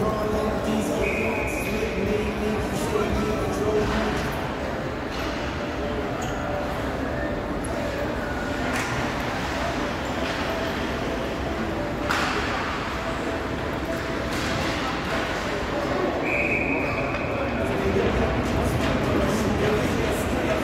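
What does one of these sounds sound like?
Ice skates scrape and hiss across an ice rink.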